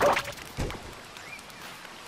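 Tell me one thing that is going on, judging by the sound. Quick light footsteps patter on a metal floor.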